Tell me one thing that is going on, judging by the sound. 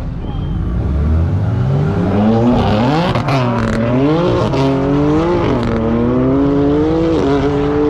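Two car engines rev hard and roar off together into the distance.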